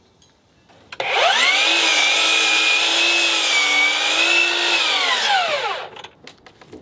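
A power mitre saw whines loudly as it cuts through wood, then spins down.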